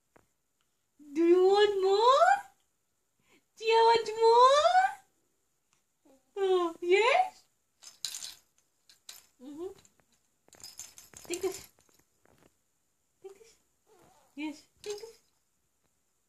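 An infant coos and babbles close by.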